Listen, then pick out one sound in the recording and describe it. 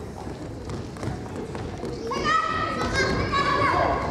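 A ball thumps against a hard floor.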